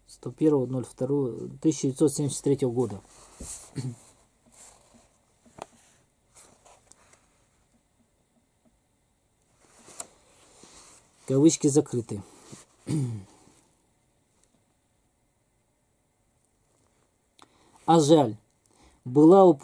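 A middle-aged man speaks quietly and haltingly, close to a microphone.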